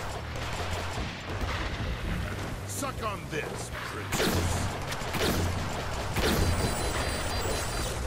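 Electric lightning crackles and zaps.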